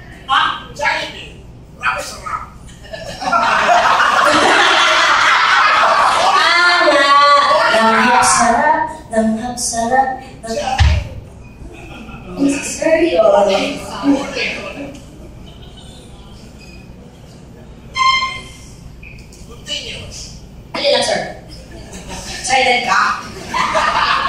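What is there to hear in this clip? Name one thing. A young woman talks with animation into a microphone over loudspeakers.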